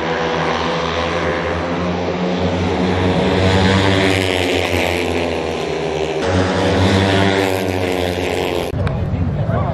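Motorcycle engines roar and whine loudly.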